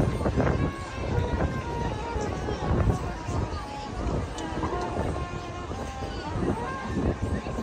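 A marching band plays brass and drums loudly outdoors.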